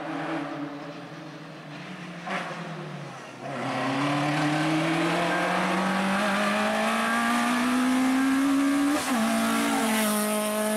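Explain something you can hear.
A rally car engine revs hard and climbs in pitch as the car speeds closer.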